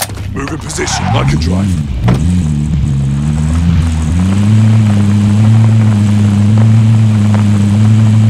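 A vehicle engine starts, revs, then hums steadily as the vehicle drives off.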